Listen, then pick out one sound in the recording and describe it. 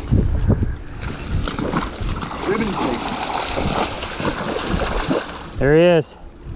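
Water splashes as someone wades through a shallow stream.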